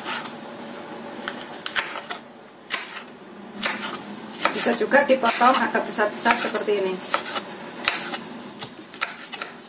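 A knife chops on a wooden board with quick knocks.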